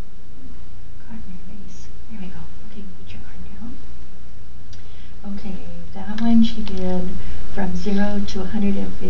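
An elderly woman talks calmly and explains, close by.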